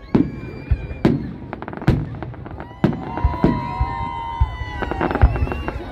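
Fireworks boom loudly overhead.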